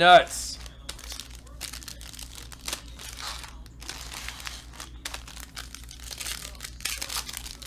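Foil wrappers crinkle and rustle as hands handle them up close.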